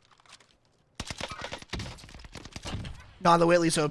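A rifle fires several quick, sharp shots.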